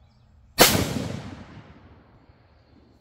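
A rifle fires a single loud shot that echoes and fades outdoors.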